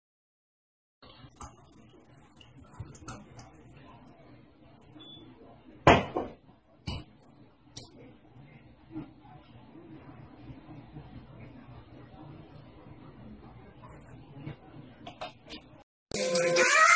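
Liquid pours and splashes into a glass.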